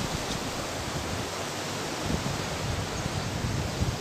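A man talks nearby, outdoors.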